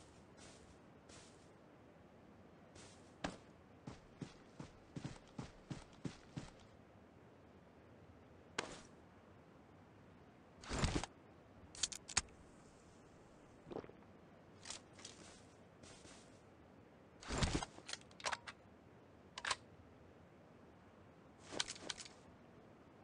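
Soft rustling steps crawl through dry grass.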